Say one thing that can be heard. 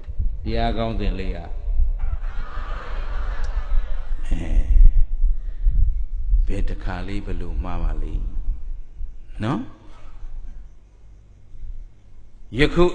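A man speaks calmly and with humour through a microphone.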